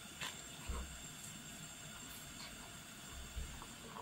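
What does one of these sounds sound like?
A spoon stirs liquid in a pot.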